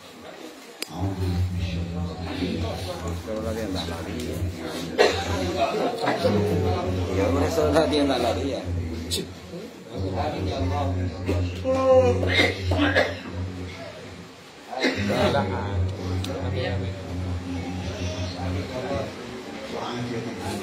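A group of men chant together in a room.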